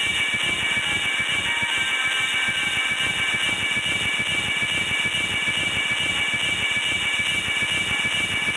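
A bright magical beam hums and crackles steadily.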